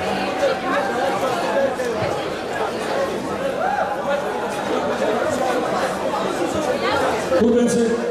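A man announces loudly through a microphone over a loudspeaker in a large echoing hall.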